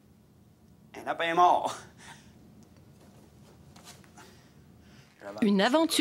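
A man speaks theatrically into a microphone.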